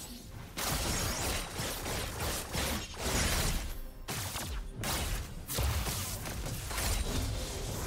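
Video game weapons strike with sharp hits.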